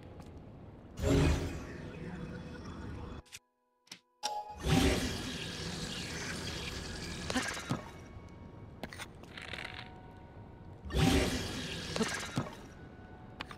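A magical shimmering whoosh swells and fades.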